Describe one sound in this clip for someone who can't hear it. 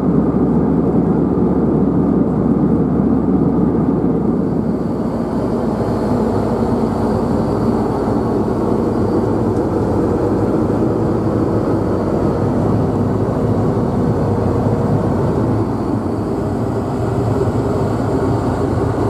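A jet engine roars steadily in an aircraft cabin.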